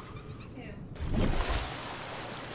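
Water splashes loudly as a small underwater craft breaks through the surface.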